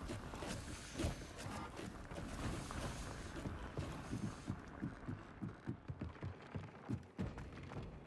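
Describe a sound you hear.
Quick footsteps tap on a hard stone floor.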